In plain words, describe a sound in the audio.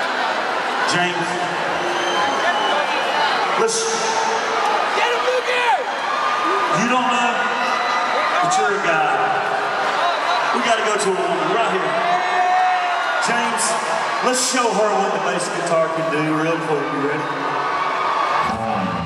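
A man sings into a microphone through loudspeakers in a large echoing hall.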